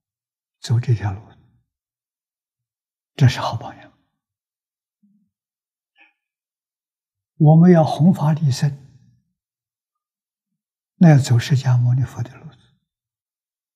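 An elderly man speaks calmly, close to a microphone, in short phrases with pauses.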